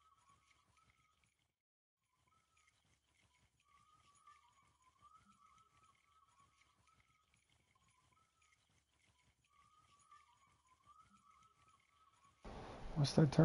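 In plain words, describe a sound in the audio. A fishing reel winds with a soft, steady clicking.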